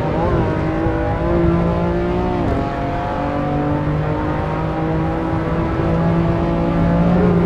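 A car engine roars steadily, rising in pitch as it revs and dropping sharply at a gear change.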